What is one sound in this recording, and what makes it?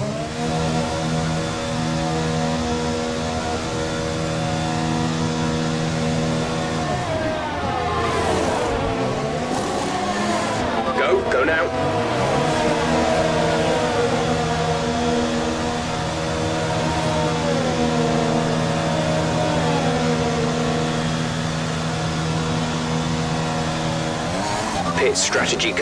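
A racing car engine hums steadily at limited speed.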